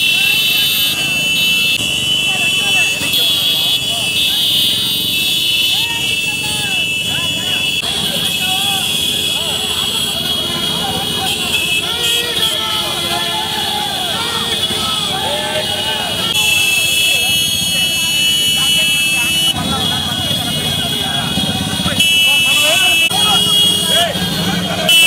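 A crowd of men shouts and cheers outdoors.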